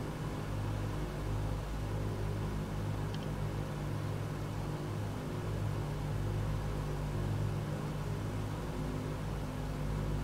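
Propeller engines drone steadily with a low hum.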